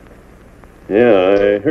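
A middle-aged man answers calmly.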